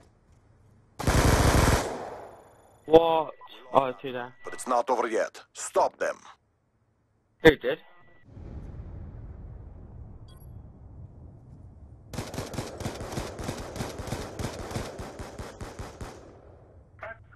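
A gun fires rapid bursts close by.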